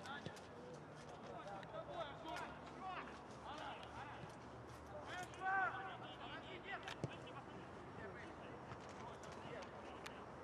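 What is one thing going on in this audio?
Players shout and call to each other across an open outdoor field.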